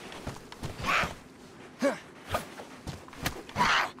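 A wooden stick thuds against a body.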